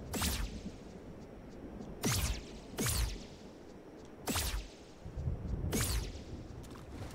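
Sharp swooshing game effects sweep downward in pitch, again and again.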